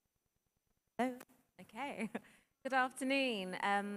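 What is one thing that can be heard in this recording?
A young woman speaks calmly and with animation through a microphone.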